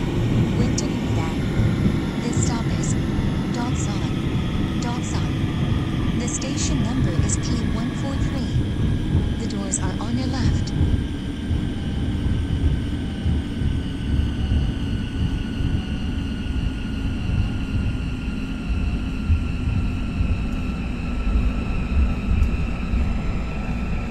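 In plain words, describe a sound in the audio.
A train's electric motor hums with a slowly falling whine.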